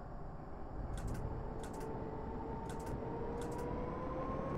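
Tram wheels click over rail joints at a steady pace.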